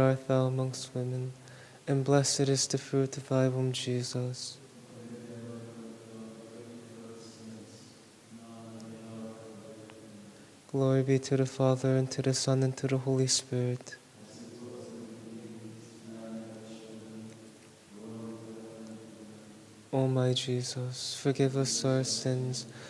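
A man chants a prayer aloud in a large echoing hall.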